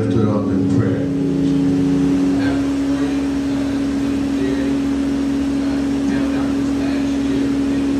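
An organ holds a steady note.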